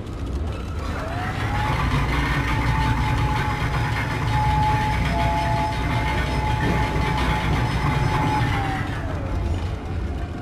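A heavy elevator motor whines up in pitch, holds a steady hum, then winds down.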